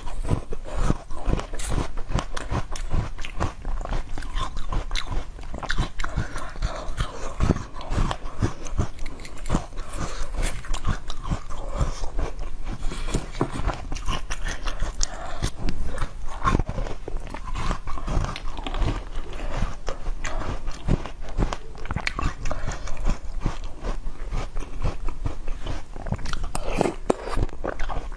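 A young woman crunches and chews crisp fruit close to a microphone.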